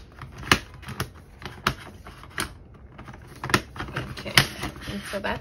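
Metal binder rings snap open and shut with sharp clicks.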